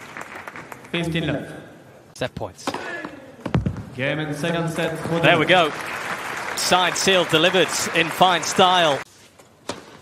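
A crowd cheers and whistles loudly.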